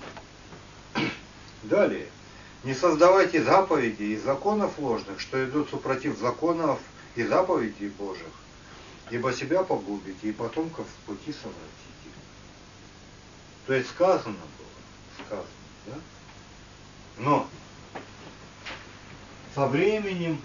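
A man reads aloud from a book in a calm, steady voice.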